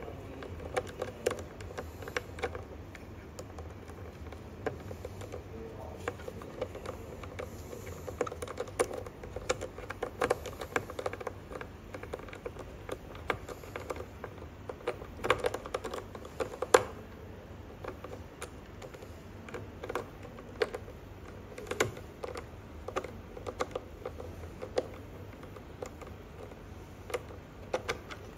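A metal tool clicks and taps against wires and plastic parts, close by.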